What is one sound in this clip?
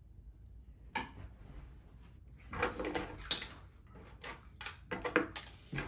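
Small objects click and clatter on a wooden table.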